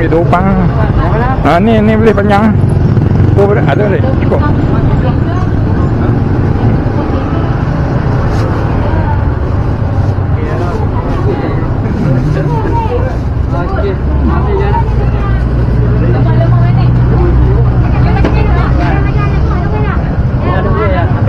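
Men and women chatter around outdoors.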